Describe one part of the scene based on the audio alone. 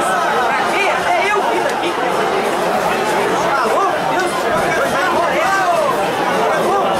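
A crowd of spectators shouts and cheers nearby outdoors.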